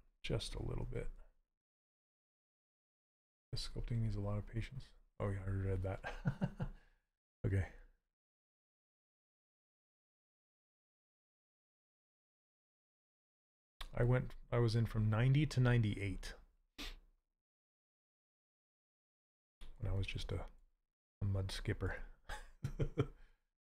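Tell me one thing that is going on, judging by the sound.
A middle-aged man talks calmly through a headset microphone, in bursts with pauses.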